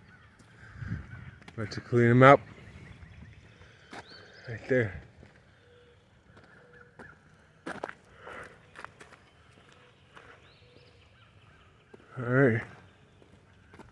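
Footsteps tread on a paved road outdoors.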